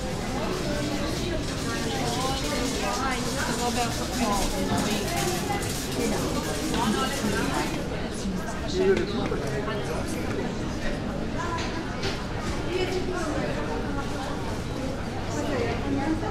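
A crowd of people chatters in the open air.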